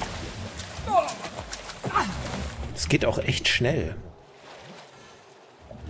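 Water splashes as footsteps wade through it.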